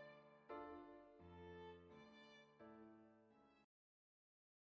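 Soft chiming music plays and stops.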